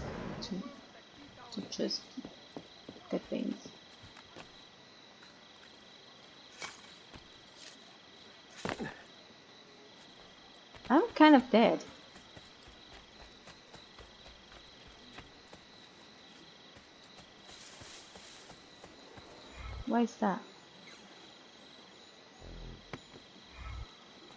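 Quick footsteps patter over rooftops and grass.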